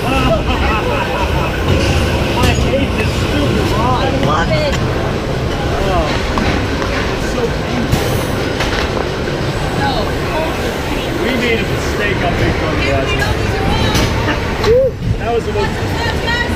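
A roller coaster car rumbles and clatters along its track.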